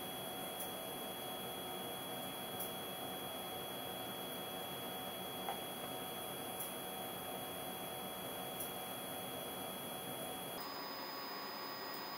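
Buttons click as a device is pressed by hand.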